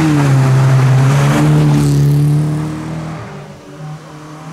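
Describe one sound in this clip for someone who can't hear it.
A rally car engine roars loudly close by and fades away.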